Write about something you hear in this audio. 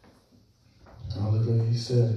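A man speaks loudly into a microphone through loudspeakers.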